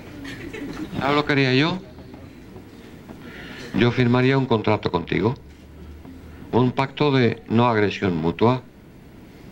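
An older man speaks through a microphone.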